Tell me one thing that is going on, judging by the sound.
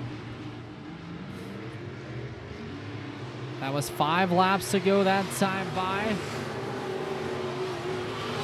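Race car engines roar steadily around a track.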